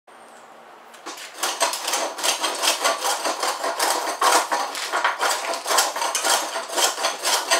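A hand saw cuts back and forth through wood in quick strokes.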